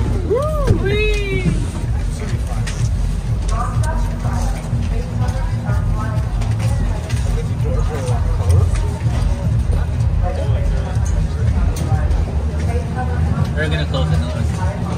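A gondola cabin rumbles and hums steadily as it moves through a station.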